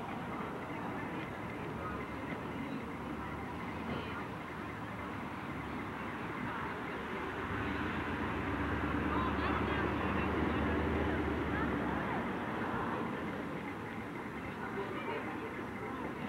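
A crowd of young people chatters outdoors.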